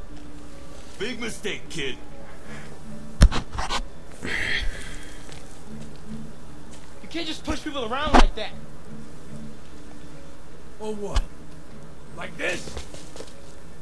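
A man speaks gruffly.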